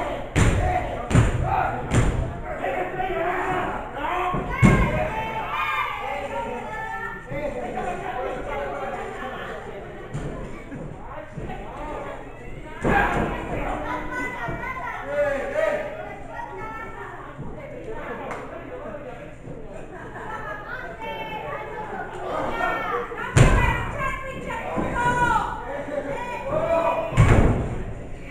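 Wrestlers slam heavily onto the ring mat with loud thuds.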